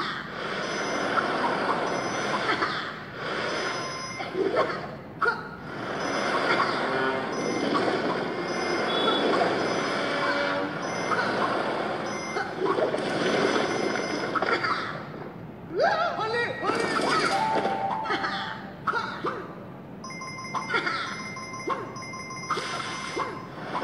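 Upbeat game music with chimes and whooshes plays from a small phone speaker.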